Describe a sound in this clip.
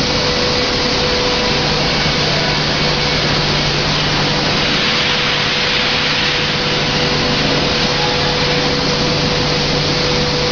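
Water mist sprays out with a loud, steady hiss.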